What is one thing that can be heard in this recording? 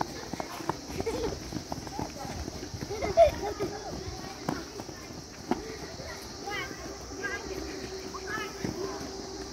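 Footsteps patter on dry ground as children run.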